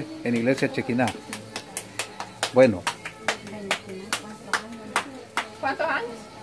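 A woman pats dough between her hands with quick, regular slaps.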